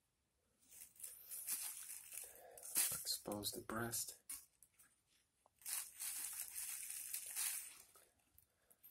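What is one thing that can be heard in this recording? A plastic bag crinkles under handling.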